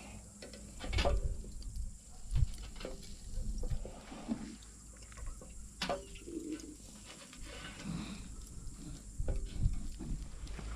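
Metal skewers clink against a grill.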